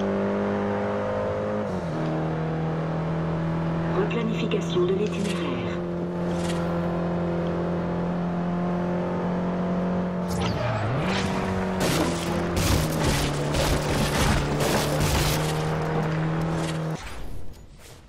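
A car engine roars at high revs, shifting gears as it speeds along.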